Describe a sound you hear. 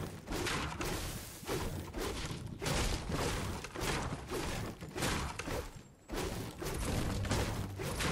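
A pickaxe strikes and chops at plants and wood again and again.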